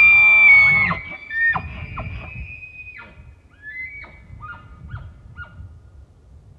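A bull elk grunts in short bursts after its bugle.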